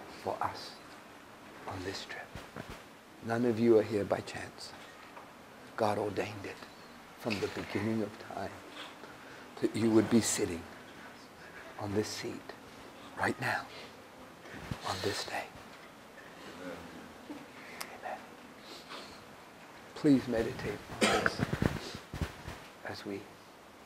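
A middle-aged man talks calmly in bursts, close by, in a room with some echo.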